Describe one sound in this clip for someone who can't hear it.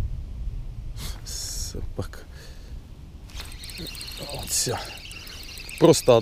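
A fishing reel whirs as its handle is turned.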